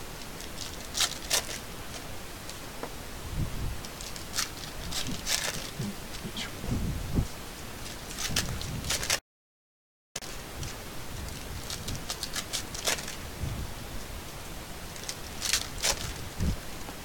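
A stack of cards taps against a table.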